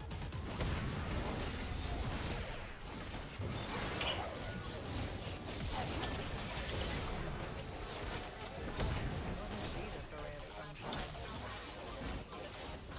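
Game spell effects crackle and boom rapidly.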